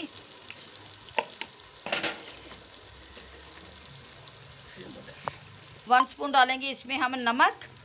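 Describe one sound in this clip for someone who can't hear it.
Oil and curry bubble and sizzle gently in a pot.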